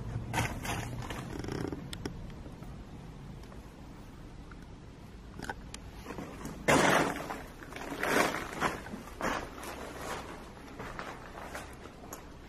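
Footsteps crunch over debris on a floor.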